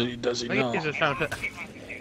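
A sword clashes against armour with a sharp metallic ring.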